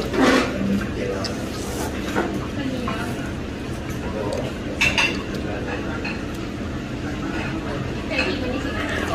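A young woman slurps noodles loudly up close.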